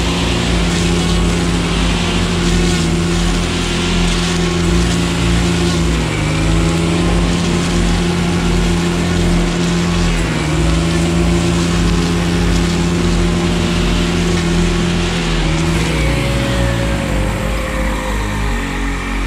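A string trimmer engine drones loudly up close, dipping and rising in pitch.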